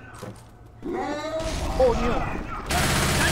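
A zombie snarls and groans.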